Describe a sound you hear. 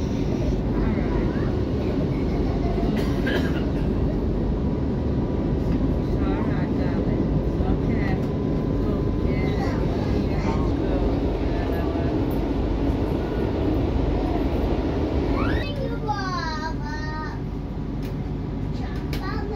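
A train rumbles steadily along the tracks, heard from inside.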